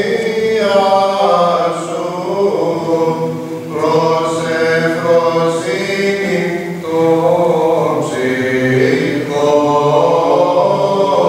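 A choir of men chants together in a large echoing hall.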